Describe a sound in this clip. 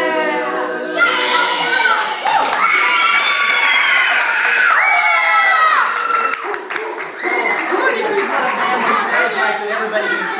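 A crowd of men and women cheers and shouts excitedly nearby.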